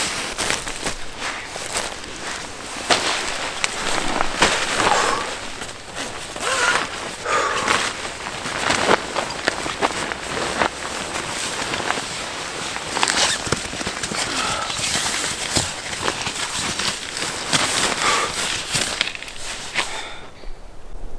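Tent fabric and a sleeping bag rustle and crinkle up close as a man climbs in and settles.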